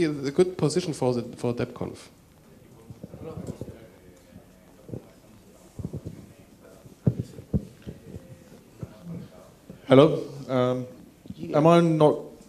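A man speaks into a microphone over loudspeakers in a large room.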